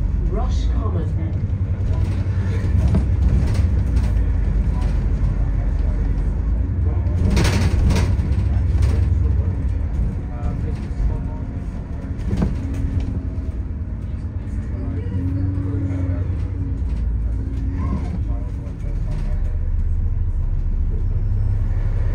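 Passing cars hum by on the road.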